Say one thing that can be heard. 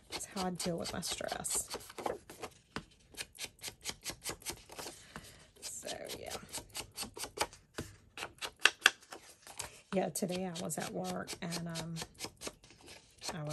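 A foam tool dabs and scrubs quickly against paper.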